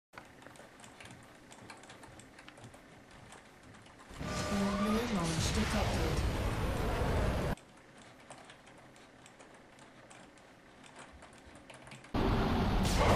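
Keys on a keyboard click rapidly.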